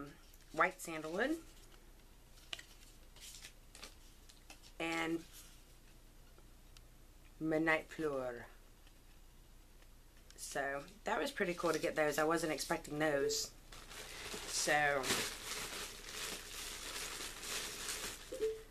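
A woman speaks calmly and close by, in short phrases with pauses.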